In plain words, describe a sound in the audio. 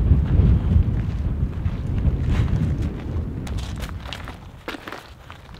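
Wind rumbles loudly outdoors, then eases.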